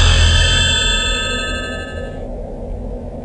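A bright, shimmering chime rings out and fades.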